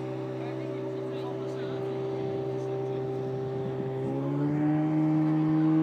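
A jet ski engine drones across the water, then revs higher.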